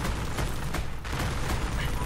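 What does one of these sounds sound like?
A tank gun fires with a sharp bang.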